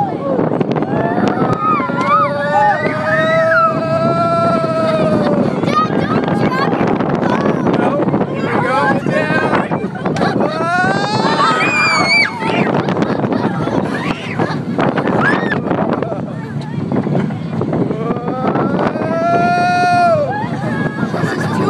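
A young child screams and laughs with excitement close by.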